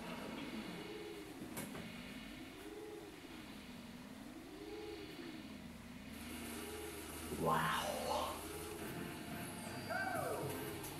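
Video game music plays a wobbling, looping tune through a television speaker.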